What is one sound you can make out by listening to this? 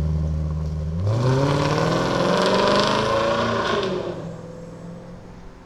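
A car engine revs and roars as the car pulls away, then fades into the distance.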